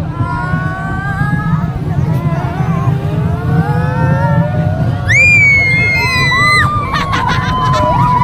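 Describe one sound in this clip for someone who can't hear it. Young girls shriek and scream with excitement close by.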